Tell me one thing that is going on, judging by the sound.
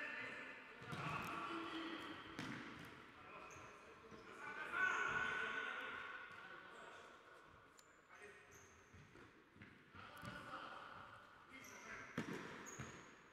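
A ball thuds on a hard floor in a large echoing hall.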